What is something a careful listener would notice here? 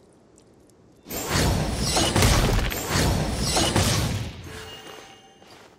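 Fiery explosions burst loudly and crackle.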